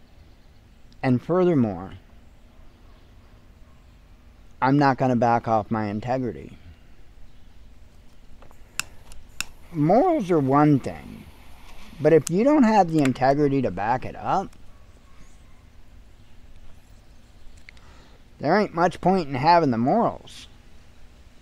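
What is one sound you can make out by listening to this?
A middle-aged man talks calmly in short bursts, close by.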